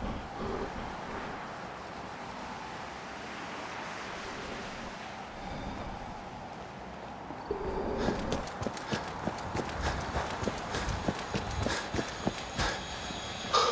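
Wind blows steadily through a snowstorm.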